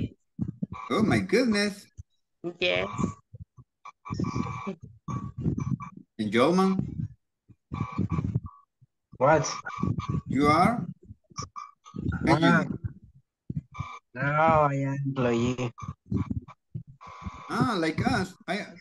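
A young man speaks calmly through an online call, reading out slowly.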